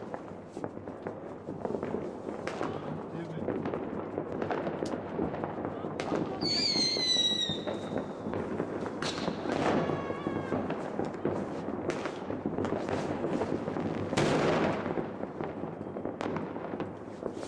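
Fireworks pop and bang sharply.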